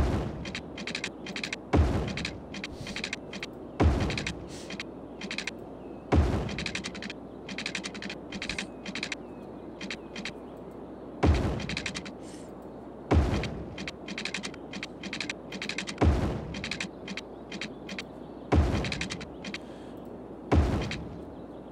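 Short thuds sound again and again as road pieces are placed in a game.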